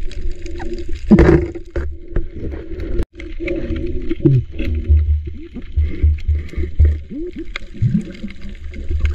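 Water rumbles and crackles, heard muffled from underwater.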